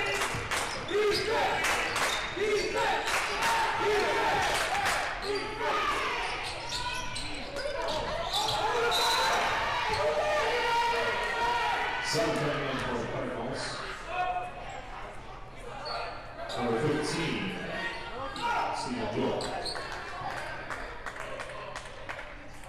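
Spectators talk and shout in a large echoing gym.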